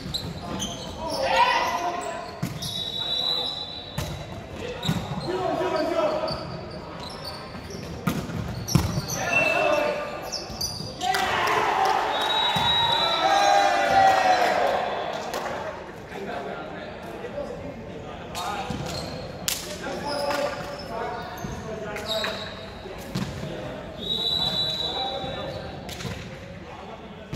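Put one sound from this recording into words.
A volleyball is struck with sharp smacks that echo around a large hall.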